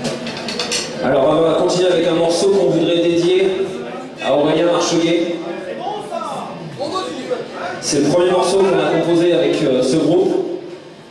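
A man sings into a microphone over a loudspeaker system.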